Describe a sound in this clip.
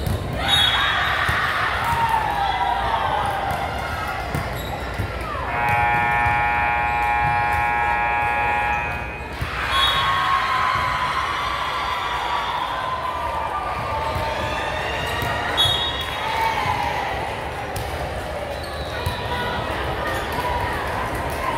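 A volleyball thumps off hands and arms.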